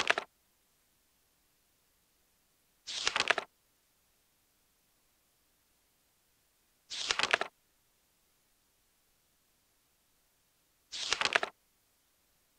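A short electronic menu sound plays as pages turn.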